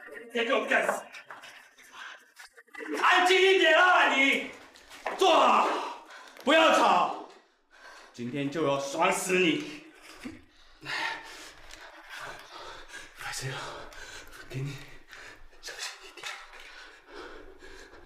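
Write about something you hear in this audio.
A young man speaks menacingly, close by.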